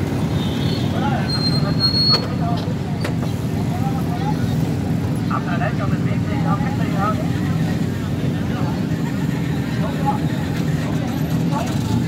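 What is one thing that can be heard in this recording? A crowd of people chatter in the distance.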